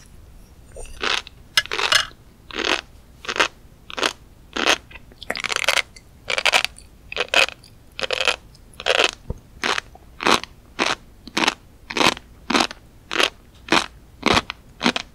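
A young woman chews crunchy food close to a microphone, with loud crackling bites.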